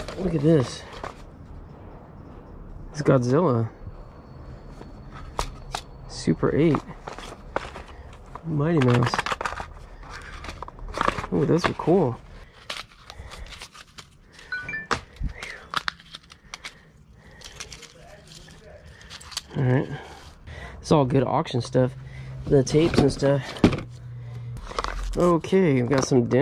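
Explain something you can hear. Cardboard boxes and plastic reels rustle and clatter as they are handled.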